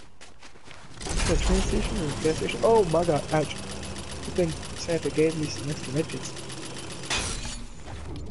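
A zipline whirs and rattles loudly.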